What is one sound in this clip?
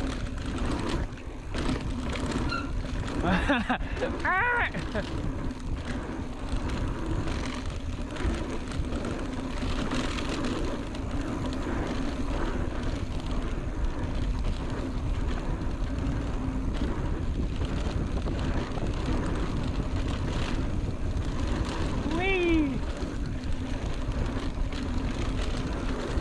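A bicycle rattles over bumps in the trail.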